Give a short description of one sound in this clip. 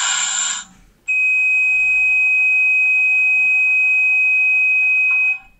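A model diesel locomotive's speaker sounds a steady vigilance alarm tone.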